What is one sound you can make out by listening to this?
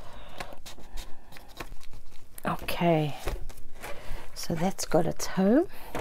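Thick pages of a book flip and thump.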